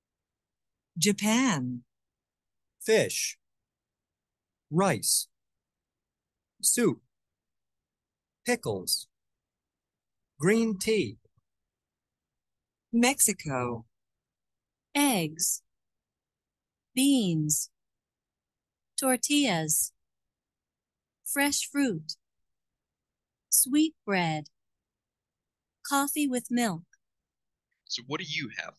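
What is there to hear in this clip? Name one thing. A young woman speaks slowly in short phrases over an online call, with pauses between them.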